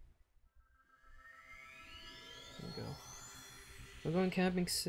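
A bright shimmering tone rises steadily.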